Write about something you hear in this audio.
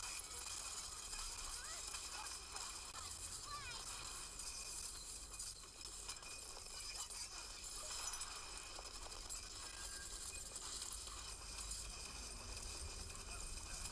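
A video game gun fires in bursts.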